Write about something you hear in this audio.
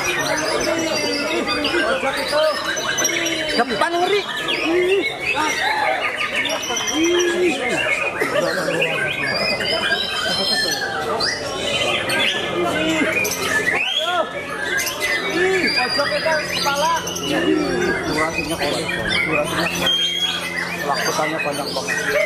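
A white-rumped shama sings a varied song of whistles and rapid phrases.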